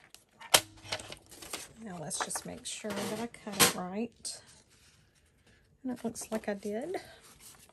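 Paper sheets rustle and slide against each other.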